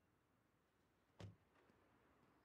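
A vehicle door slams shut.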